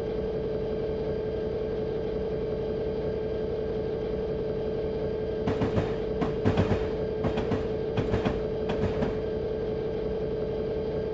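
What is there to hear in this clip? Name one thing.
A diesel locomotive engine drones steadily while the train rolls along the track.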